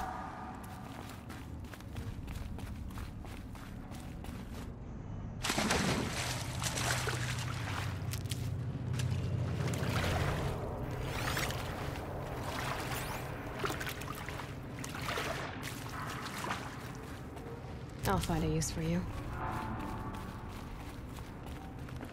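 Footsteps splash through shallow water.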